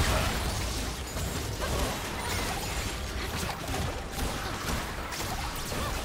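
Spell effects crackle and burst in a fantasy battle.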